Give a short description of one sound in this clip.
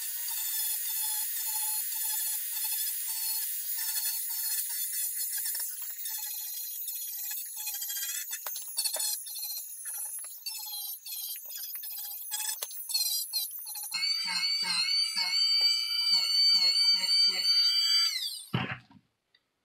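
A rotary tool whines at high speed.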